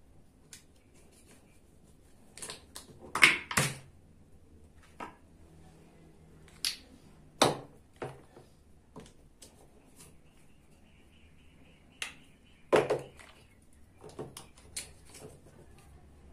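A plastic toy knife knocks against a plastic cutting board.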